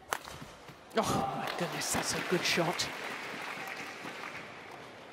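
A large crowd cheers and applauds in a big echoing hall.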